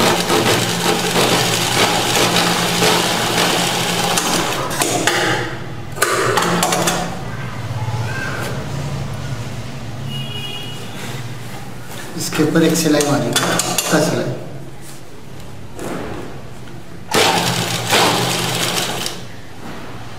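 An electric sewing machine runs, stitching through fabric.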